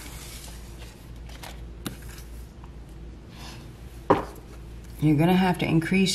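A card taps and slides on a wooden table.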